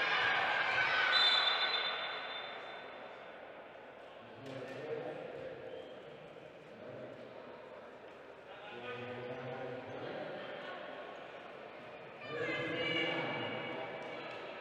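A crowd cheers and applauds in a large echoing hall.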